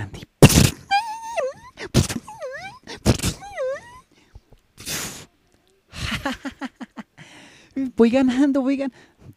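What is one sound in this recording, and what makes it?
A young girl speaks in a worried, high voice.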